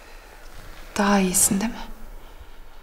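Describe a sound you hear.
A young woman speaks softly and anxiously close by.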